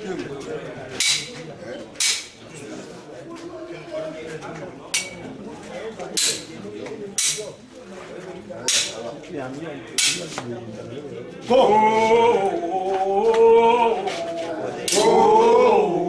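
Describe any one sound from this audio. Wooden sticks strike together with sharp clacks.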